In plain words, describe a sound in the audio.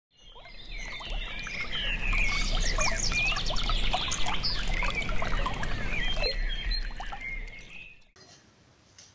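Shallow river water flows gently.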